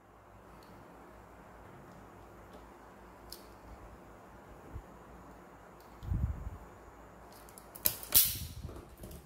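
Wire strippers click and snap as they strip a cable.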